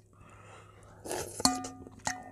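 A young man slurps food noisily.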